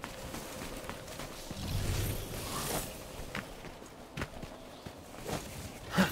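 Footsteps run over rubble.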